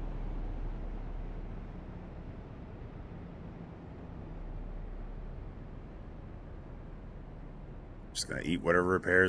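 A race car engine drones steadily.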